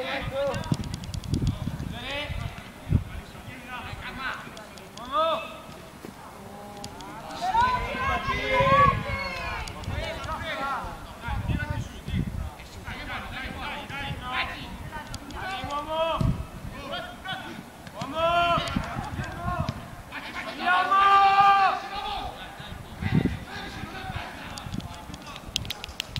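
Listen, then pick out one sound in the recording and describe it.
Young players shout to each other across an open field, heard from a distance.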